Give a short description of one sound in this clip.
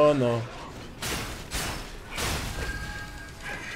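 A sword slashes with sharp whooshes and strikes.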